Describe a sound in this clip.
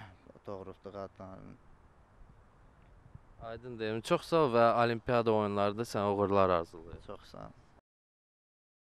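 A young man speaks calmly into a microphone, close by.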